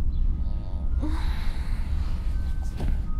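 Bedding rustles as a pillow is pulled around.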